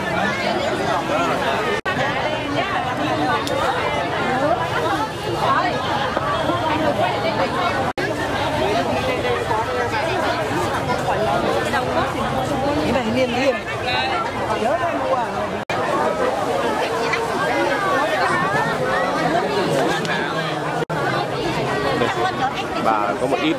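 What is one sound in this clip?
A crowd of men and women chatter all around, busy and close, outdoors.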